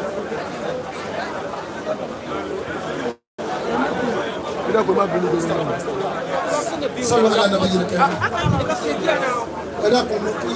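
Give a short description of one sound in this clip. A crowd of men and women chatter and call out loudly close by.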